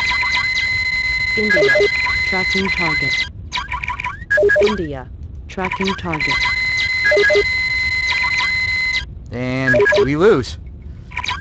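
Electronic beeps and warbling tones sound from a computer game.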